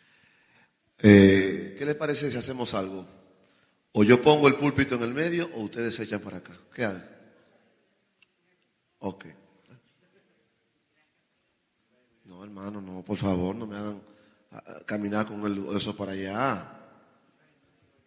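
A man preaches with passion into a microphone, his voice amplified.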